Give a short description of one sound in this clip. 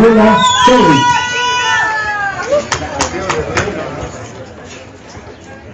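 A crowd outdoors cheers and applauds.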